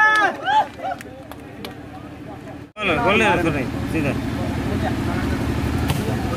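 A crowd of young men and boys chatters and shouts outdoors.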